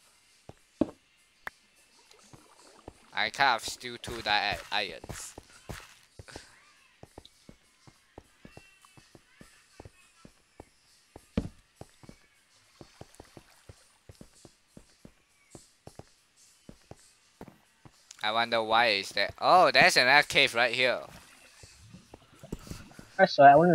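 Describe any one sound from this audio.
A pickaxe chips at stone blocks.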